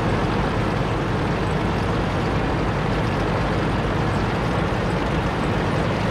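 A heavy tank engine rumbles steadily as the tank rolls along.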